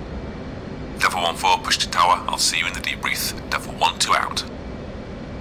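A young man speaks animatedly and close into a microphone.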